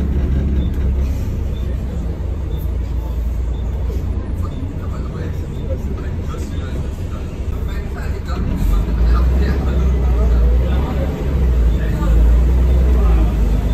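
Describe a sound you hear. A bus engine rumbles low and steady from inside the bus.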